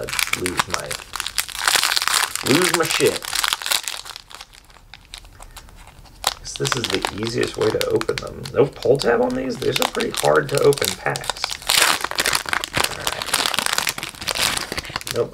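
A foil wrapper crinkles and tears as it is opened by hand.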